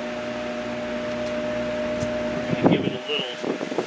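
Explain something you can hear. An engine idles with a low, steady rumble, then cuts off.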